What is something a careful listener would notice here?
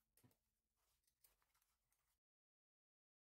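Scissors snip through synthetic leather.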